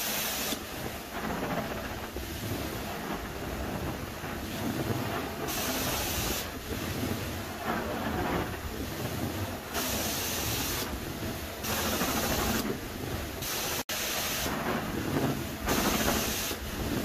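A carpet extractor's suction roars loudly and steadily.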